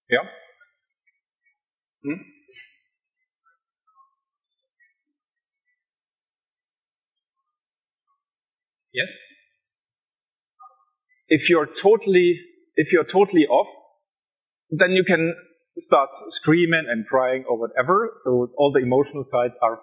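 A man speaks into a microphone, presenting with animation.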